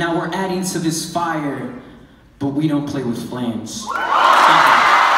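A boy speaks into a microphone in a large echoing room.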